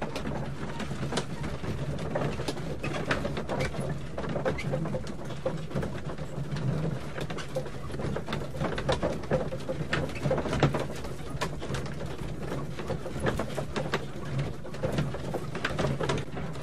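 A carriage rattles and clatters steadily as it rolls along.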